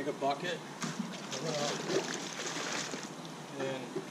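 Water pours and splashes from a bucket into a pool.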